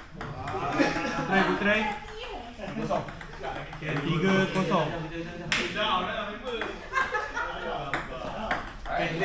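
A ping pong ball clicks back and forth off paddles and a table.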